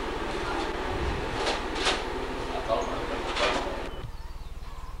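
A man talks nearby in a small room.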